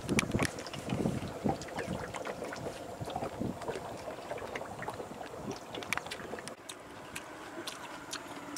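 Water laps against a wooden boat.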